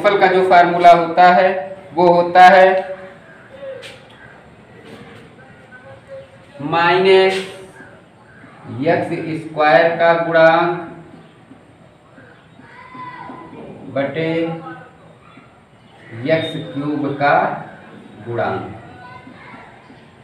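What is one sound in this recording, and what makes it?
A young man speaks calmly and explains close by.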